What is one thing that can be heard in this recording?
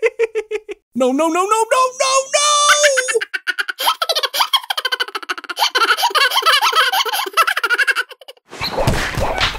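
A young man laughs loudly up close.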